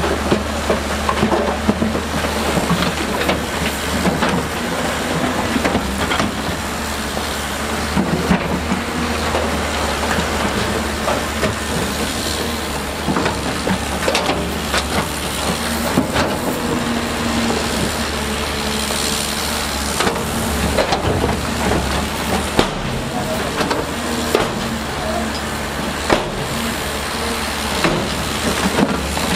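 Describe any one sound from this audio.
Rocks clatter and scrape as an excavator bucket digs.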